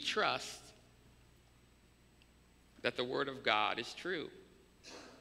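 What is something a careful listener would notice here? A young man speaks with animation through a microphone, pausing between phrases.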